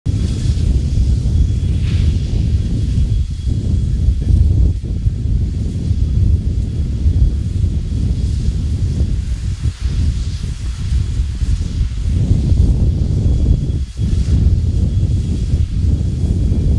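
Steam hisses from locomotive cylinders.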